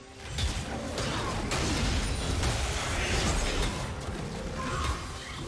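Magic spells whoosh and crackle in a fast video game battle.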